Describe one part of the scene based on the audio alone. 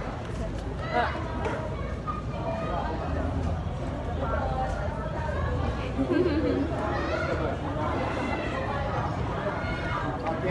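A young woman talks cheerfully, close up.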